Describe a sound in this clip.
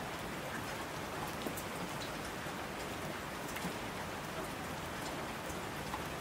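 A mountain stream rushes and roars.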